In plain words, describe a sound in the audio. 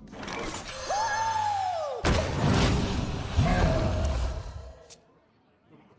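Magical game effects whoosh and burst as a card is played.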